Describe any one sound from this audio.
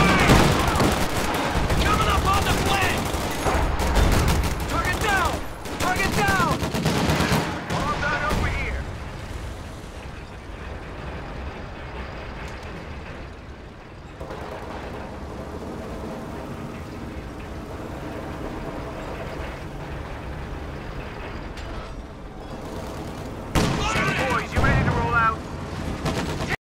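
Gunfire crackles and pops in a battle.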